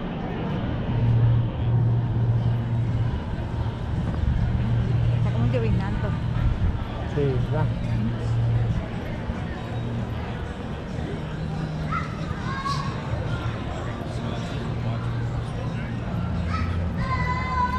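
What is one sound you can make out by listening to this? People chatter faintly in the distance outdoors.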